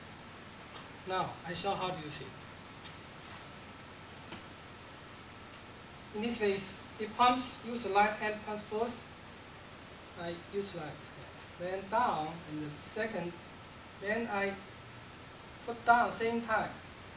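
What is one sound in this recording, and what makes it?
A man speaks calmly, explaining, close by.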